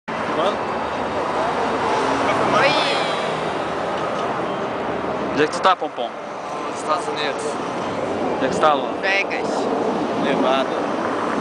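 A young woman talks close by, outdoors.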